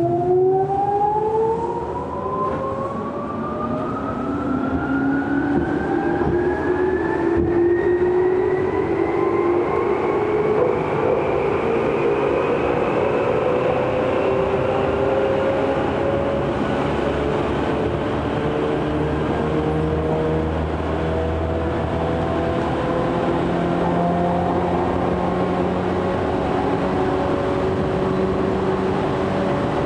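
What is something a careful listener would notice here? Chopper-controlled traction motors of an electric commuter train whine, rising in pitch as the train pulls away, heard from inside the car.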